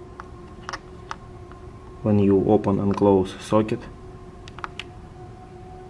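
Fingertips lightly tap and click on a hard plastic part.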